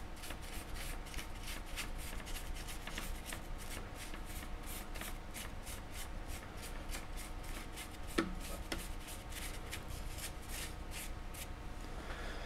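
A small brush scrapes against a hard surface in quick, rhythmic strokes.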